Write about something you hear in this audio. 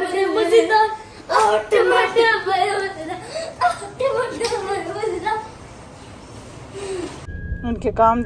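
Young boys laugh nearby.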